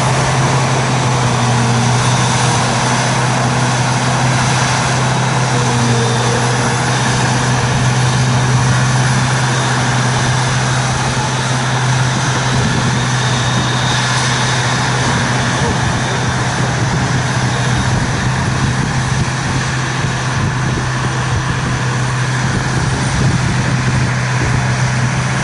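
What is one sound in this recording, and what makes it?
A forage harvester's engine drones steadily nearby, outdoors.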